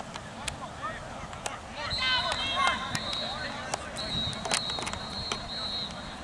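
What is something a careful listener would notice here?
Young players shout to each other far off across an open field.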